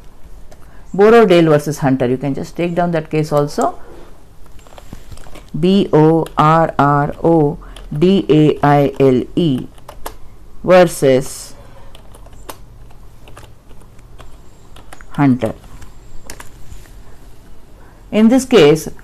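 A woman speaks calmly into a microphone, explaining in a lecturing tone.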